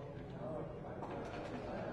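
Dice rattle in a cup.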